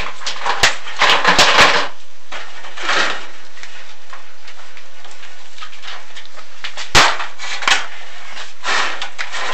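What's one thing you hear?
Something scrapes and knocks against the inside of a pipe.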